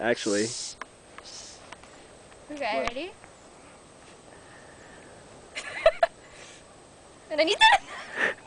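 A young woman laughs and squeals close by.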